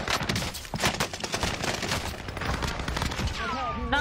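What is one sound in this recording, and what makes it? Rapid gunfire rattles loudly.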